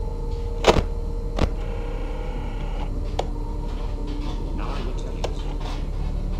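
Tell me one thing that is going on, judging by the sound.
Static crackles and hisses.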